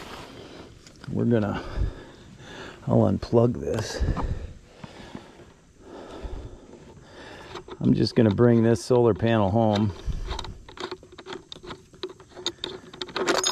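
Hard plastic parts click and rattle as they are fitted together up close.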